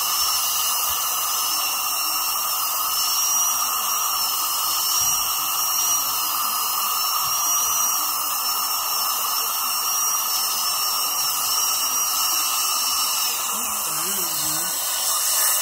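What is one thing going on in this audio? A dental suction tube hisses and gurgles steadily.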